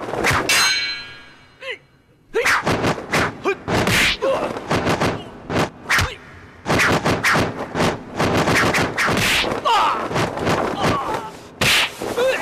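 A man shouts with effort.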